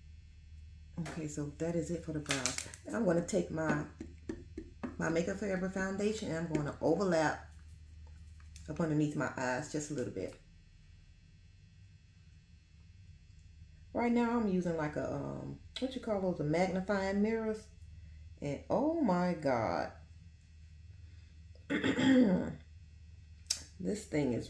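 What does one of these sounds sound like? A woman talks calmly and close up, in pauses.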